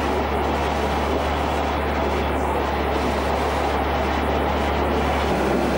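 An engine hums steadily nearby.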